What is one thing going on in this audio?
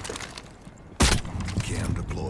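A gun fires a single loud shot close by.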